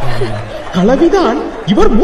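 A young man speaks loudly and animatedly into a microphone.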